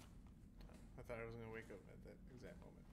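A young man speaks quietly close to a microphone.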